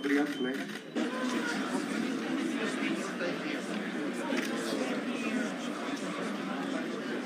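A crowd murmurs and chatters.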